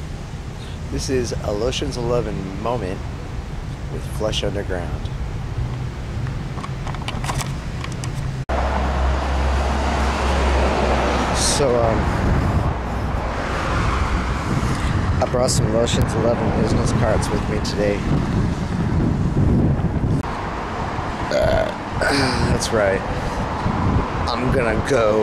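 A man talks close to a microphone with animation, outdoors in wind.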